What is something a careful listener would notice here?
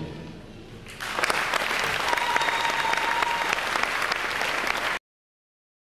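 A crowd applauds and cheers loudly in a large hall.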